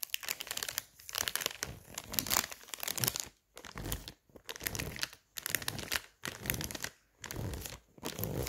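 Plastic wrap crinkles and rustles close by.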